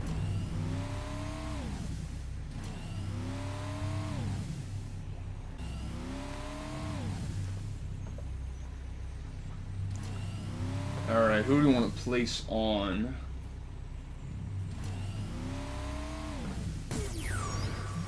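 A car engine revs up and drops again and again.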